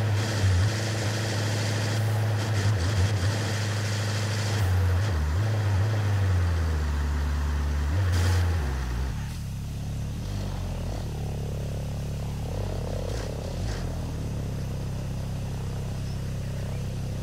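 A truck engine rumbles steadily as the truck drives along a road.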